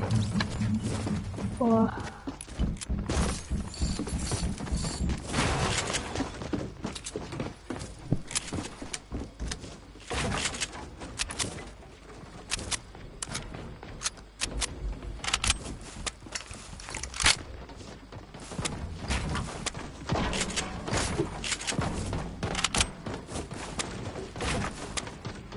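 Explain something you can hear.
Wooden ramps and walls clatter as they are quickly built.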